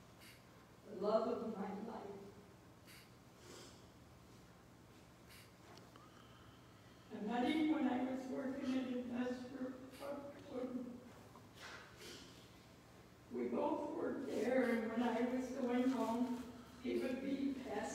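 A woman speaks into a microphone, reading out calmly, in a large echoing hall.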